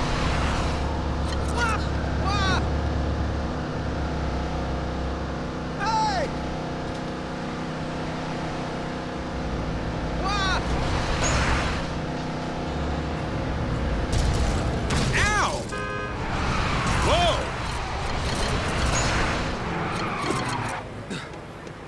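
A car engine roars steadily as a car speeds along.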